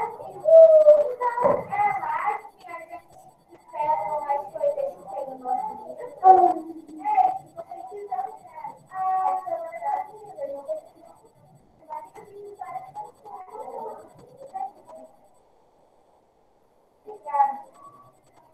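A woman speaks calmly through a computer microphone, as on an online call.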